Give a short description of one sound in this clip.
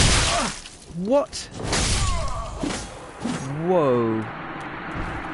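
A game character cries out in pain as it dies.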